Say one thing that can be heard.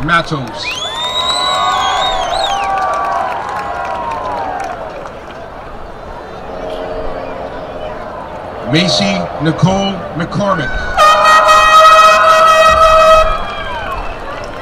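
A crowd cheers and whistles.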